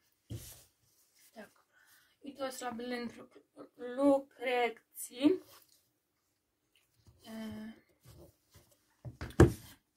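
A book's pages rustle as they are handled.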